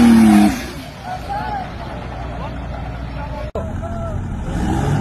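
A truck engine roars loudly.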